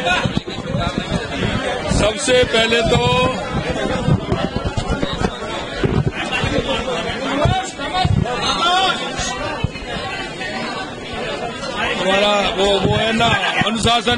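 A middle-aged man speaks calmly and firmly into microphones, close up.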